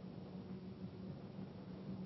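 Papers rustle on a desk.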